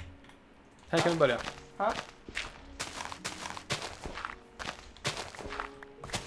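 A shovel digs into dirt with repeated soft crunching thuds.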